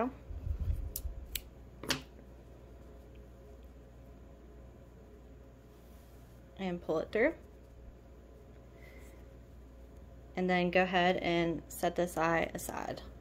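Yarn rustles softly as it is handled and crocheted.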